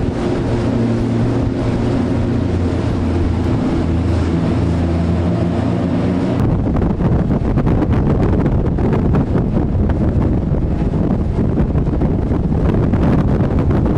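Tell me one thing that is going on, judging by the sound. Water rushes and sprays under a fast racing sailboat.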